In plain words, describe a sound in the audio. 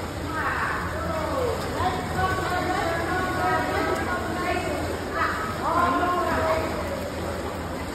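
A swimmer splashes through water in an echoing hall.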